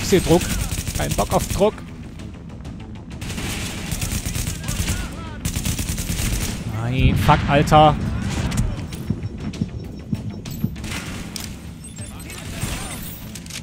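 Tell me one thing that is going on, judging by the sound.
Guns fire in rapid bursts of shots.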